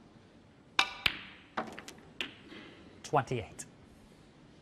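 Snooker balls knock against each other with sharp clicks.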